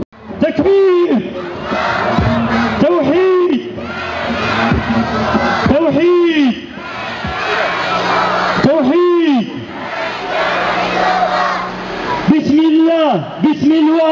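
A man shouts chants loudly and rhythmically.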